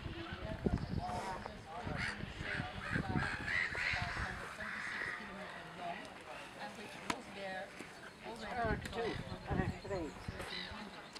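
Adults talk casually nearby outdoors.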